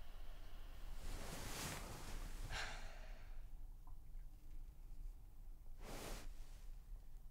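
A young woman breathes out in long, audible sighs.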